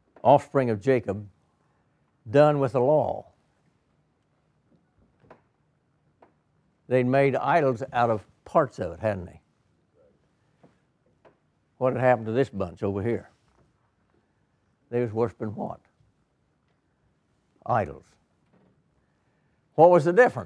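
An elderly man speaks with animation through a microphone, pausing between phrases.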